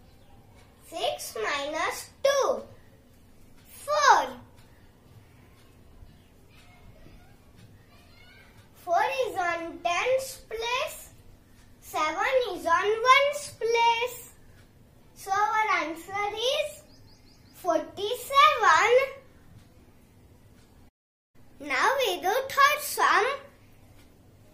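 A young boy speaks clearly and with animation, close by.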